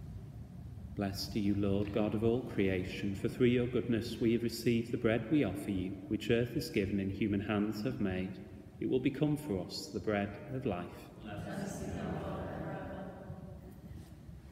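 A middle-aged man chants in a slow, sung voice that echoes through a large hall.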